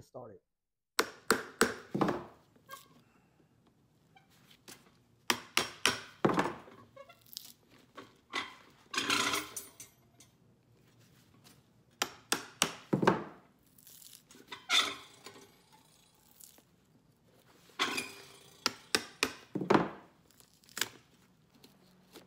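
A knife scrapes and cuts at a shoe's leather sole in sharp strokes.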